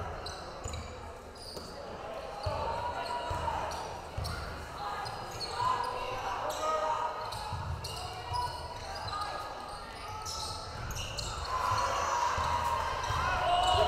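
A crowd murmurs and cheers in an echoing gym.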